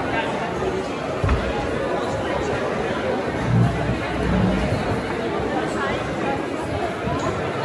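Dancers' shoes shuffle and tap on a wooden floor.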